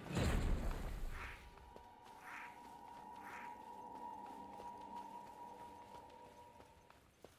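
Footsteps rustle quickly through tall grass.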